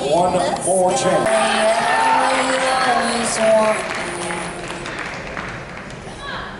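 A large crowd cheers and whistles in an echoing hall, then quiets down.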